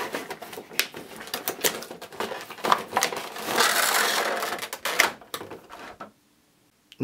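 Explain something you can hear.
Stiff plastic packaging crinkles and rattles as hands open a box.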